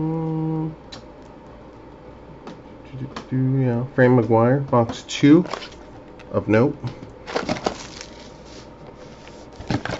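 A cardboard box lid is opened and shuffled.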